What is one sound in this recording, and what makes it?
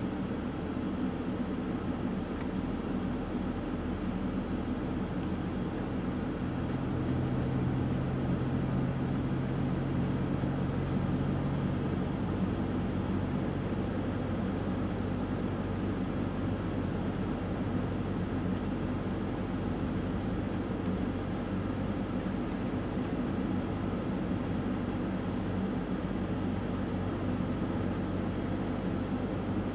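Tyres roll over the road surface with a steady rumble.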